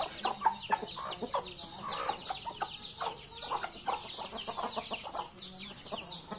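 Chickens and chicks cluck and chirp nearby outdoors.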